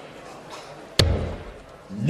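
A dart thuds into a board.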